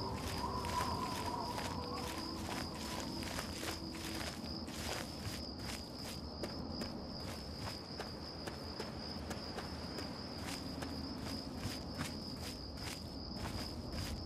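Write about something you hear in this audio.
Footsteps crunch steadily on dry, stony ground.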